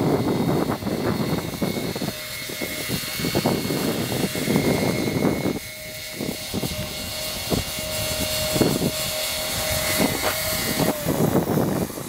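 Electric rotors of a model tiltrotor whine as it hovers low and sets down.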